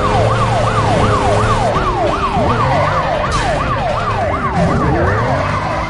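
Police sirens wail rapidly up and down close by.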